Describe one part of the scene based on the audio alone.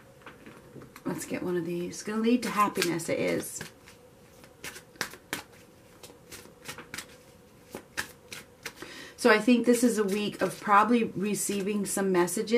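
Playing cards riffle and slap as a deck is shuffled.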